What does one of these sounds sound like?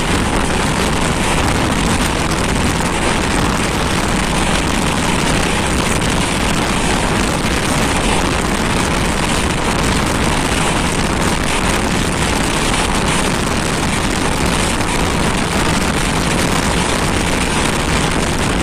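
A train rumbles and clatters steadily along the tracks, heard from on board.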